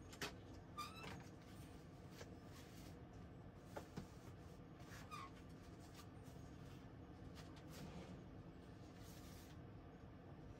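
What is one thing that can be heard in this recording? Objects knock and rustle close by.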